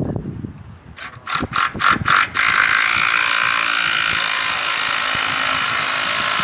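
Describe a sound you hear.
A cordless drill whirs in bursts, then runs steadily, driving a screw into wood.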